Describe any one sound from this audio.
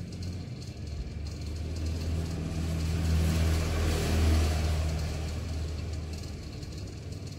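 A tablet rubs and bumps faintly as hands turn it.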